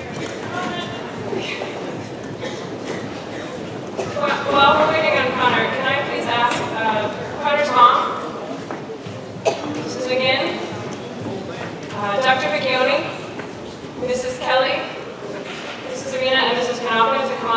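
An audience murmurs and chatters at tables.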